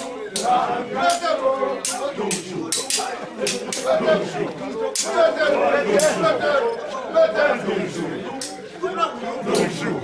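Hand drums beat loudly in a lively rhythm outdoors.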